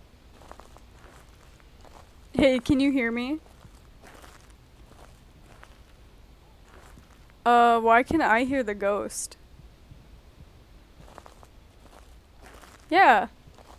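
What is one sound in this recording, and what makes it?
Footsteps tread slowly on stone.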